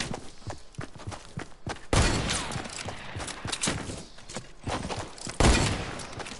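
Footsteps patter quickly on grass in a video game.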